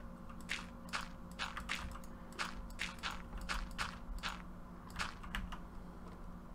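Gravel blocks crunch as they are placed one after another.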